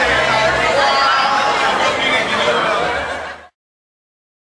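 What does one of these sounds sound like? A crowd of men and women chatter and laugh nearby.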